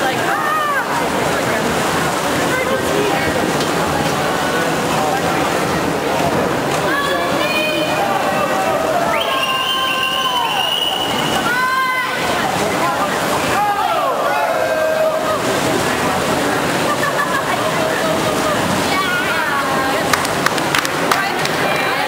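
Swimmers splash and churn through the water.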